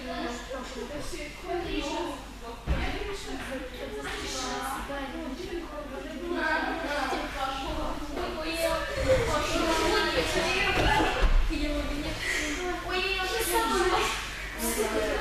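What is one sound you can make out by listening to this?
Children and young girls chatter and call out in a large echoing hall.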